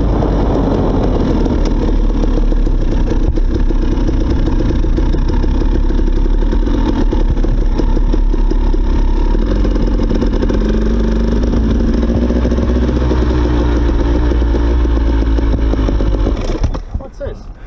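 A dirt bike engine drones steadily as it rides along.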